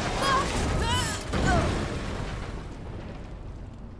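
A heavy van crashes down onto hard ground.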